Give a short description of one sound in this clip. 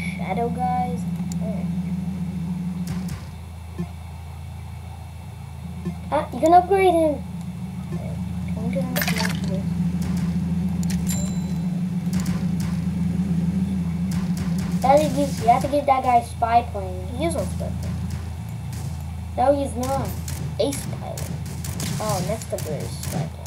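A boy talks with animation into a nearby microphone.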